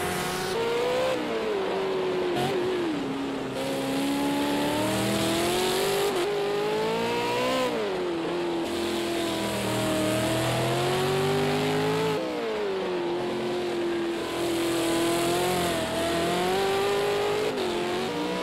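A racing car engine roars loudly, revving up and down through the gears.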